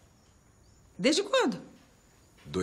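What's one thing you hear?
A woman speaks brightly nearby.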